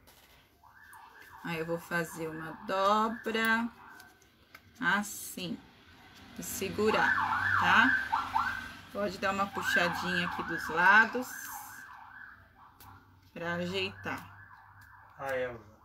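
Paper rustles as it is folded.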